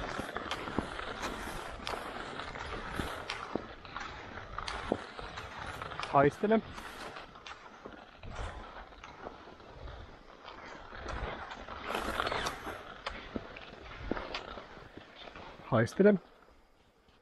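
Skis swish and crunch over packed snow.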